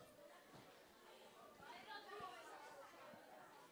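A child speaks briefly into a microphone.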